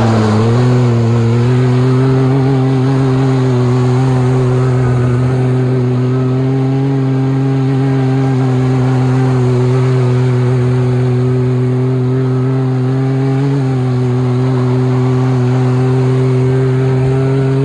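A turbocharged three-cylinder side-by-side UTV engine holds at high revs.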